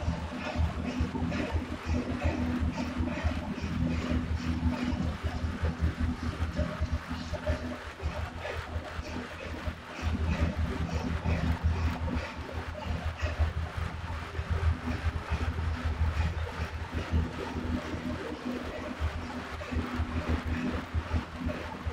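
An indoor bike trainer hums and whirs steadily.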